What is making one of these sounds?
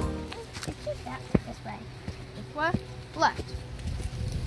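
Children talk excitedly close by.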